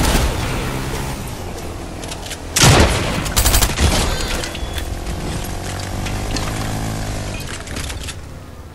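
A small motor engine drones steadily, rising and falling in pitch.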